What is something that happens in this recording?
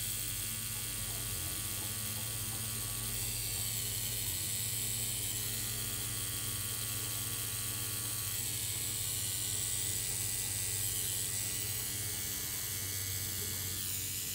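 A tattoo machine buzzes steadily close by.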